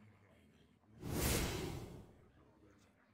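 A card game plays a short whooshing sound effect.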